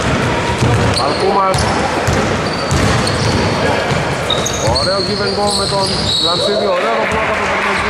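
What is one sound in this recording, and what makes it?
Sneakers squeak sharply on a wooden floor in an echoing hall.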